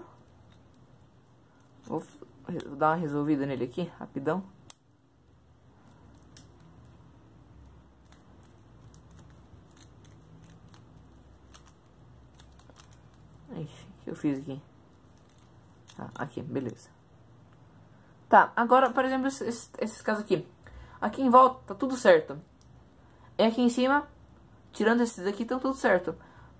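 Plastic puzzle cube pieces click and clack as they are twisted.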